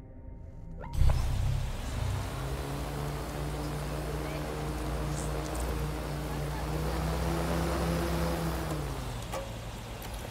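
A hovering drone hums steadily with whirring rotors, its pitch rising slightly.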